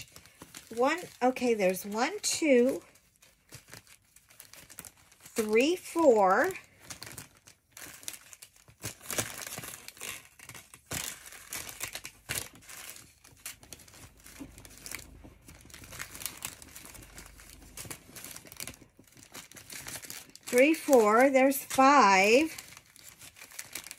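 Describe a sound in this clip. Plastic bags crinkle and rustle as hands sort through them.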